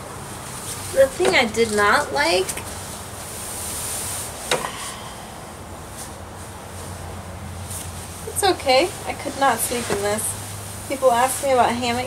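A hammock rustles as a man climbs in.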